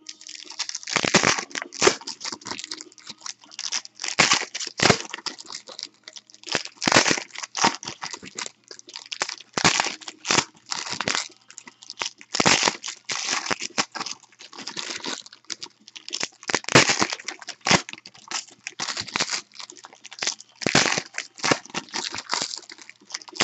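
Foil wrappers crinkle and tear loudly, up close.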